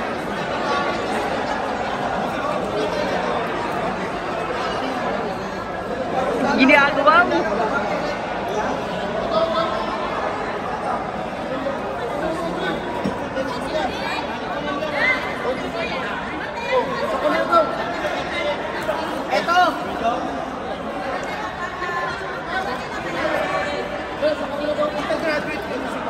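A crowd of people chatters all around in a large echoing hall.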